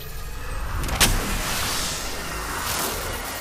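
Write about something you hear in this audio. An electric burst crackles sharply.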